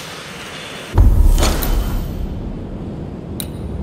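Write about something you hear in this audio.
A deep whoosh sounds as a menu opens.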